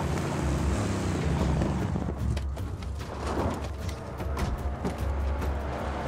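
A car crashes and tumbles with a loud metal thud.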